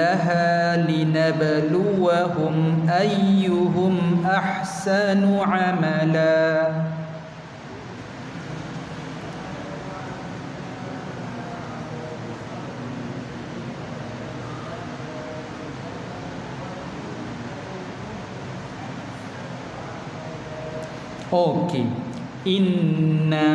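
A man chants a recitation in a drawn-out, melodic voice through a microphone in an echoing hall.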